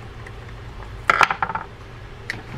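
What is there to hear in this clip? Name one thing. A screwdriver is set down on a wooden table with a clack.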